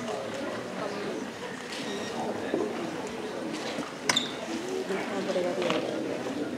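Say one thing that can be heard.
A crowd chatters and murmurs.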